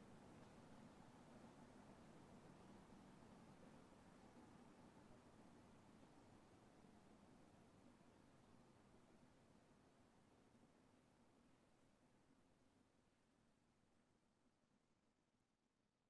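A steam locomotive chugs and rumbles in the distance, slowly fading away.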